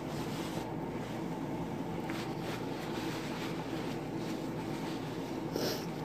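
Paper crinkles in a hand.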